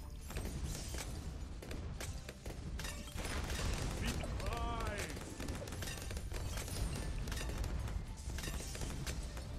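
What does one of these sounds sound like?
Rapid popping and small explosions crackle from a video game.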